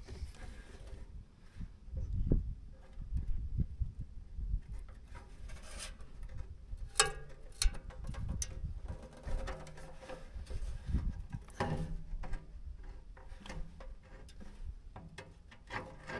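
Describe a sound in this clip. Plastic parts knock and rattle under a hand.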